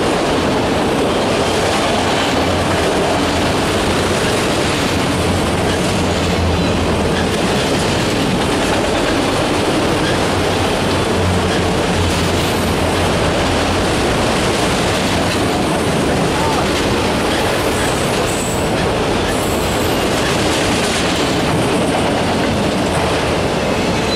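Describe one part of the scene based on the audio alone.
A long freight train rumbles past close by with steady loud roaring.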